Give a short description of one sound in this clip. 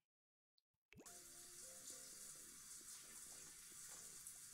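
A shower runs with a steady hiss of water.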